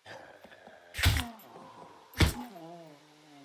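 A blade strikes a body with sharp thuds.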